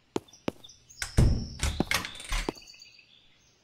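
A wooden door opens with a knock and a creak.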